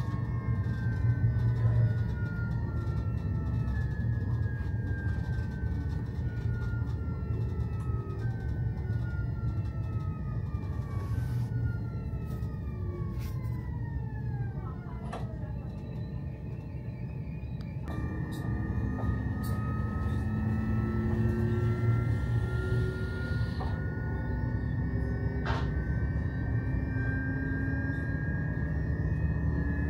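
A train's motor whines, rising and falling in pitch.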